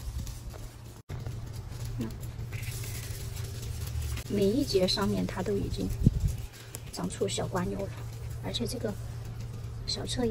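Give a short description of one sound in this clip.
Leaves rustle softly as a hand moves a plant's stem.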